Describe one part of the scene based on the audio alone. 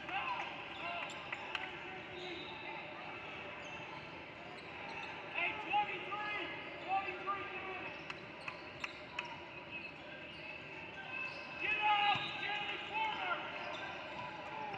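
Sneakers squeak sharply on a hardwood court in a large echoing gym.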